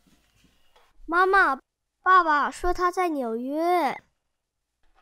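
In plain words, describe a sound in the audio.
A young boy calls out loudly.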